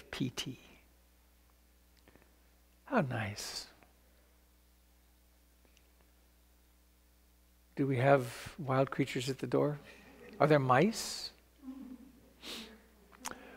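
An older man speaks calmly and slowly, close to a microphone, with long pauses.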